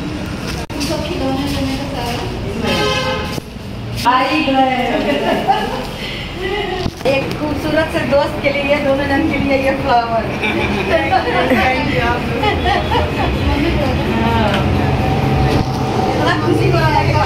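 Several women talk and laugh cheerfully close by.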